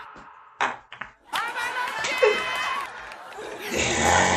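Young men laugh heartily.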